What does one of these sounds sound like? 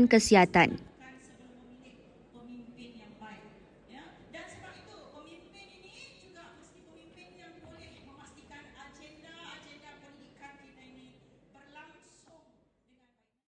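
A woman speaks earnestly through a microphone.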